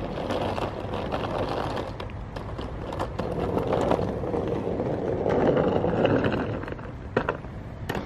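Suitcase wheels rumble over pavement outdoors.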